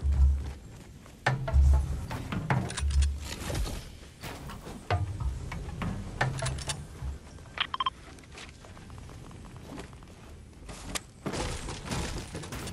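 Heavy balls roll and thump along a hard floor.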